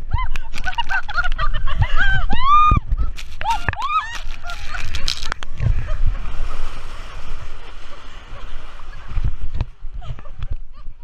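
Water rushes and splashes down a slide.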